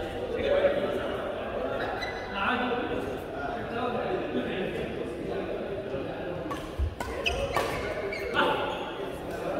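Men talk and call out across a large echoing hall.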